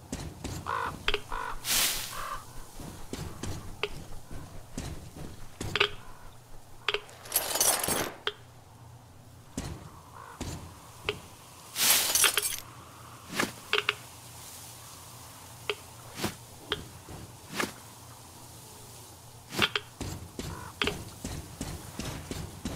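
Footsteps crunch over debris on a wooden floor.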